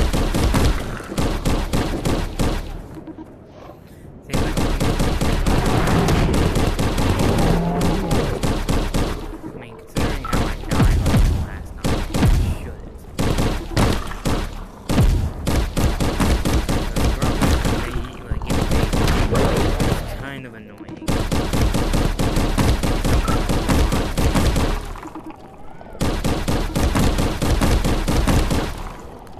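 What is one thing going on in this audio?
Creatures burst apart with wet splatters.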